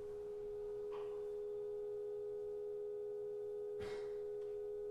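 A struck percussion note rings out sharply.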